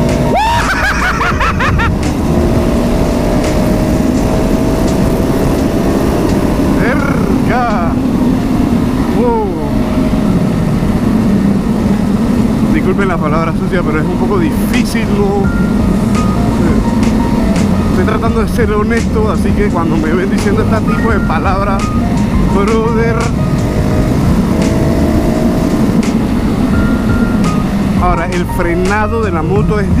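A single-cylinder supermoto motorcycle engine drones while cruising at speed.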